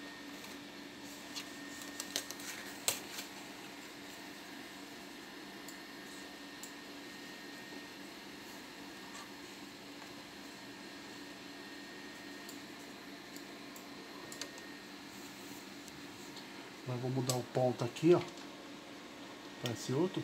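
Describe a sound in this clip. Fabric rustles and brushes against a sewing machine.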